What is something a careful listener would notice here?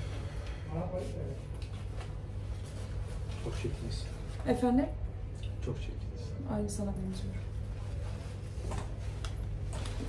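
A coat's fabric rustles as it is put on.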